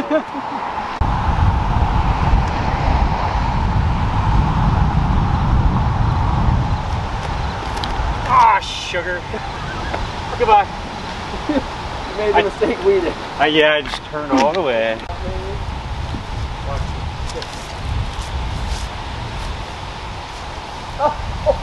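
Wind blows in gusts outdoors.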